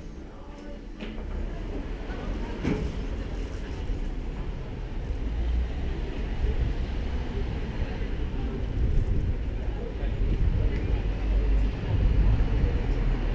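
Wind rumbles against the microphone outdoors.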